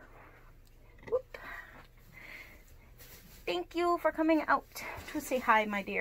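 Soft fabric rustles as a plush costume head is handled.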